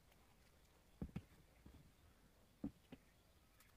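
Objects knock on a table.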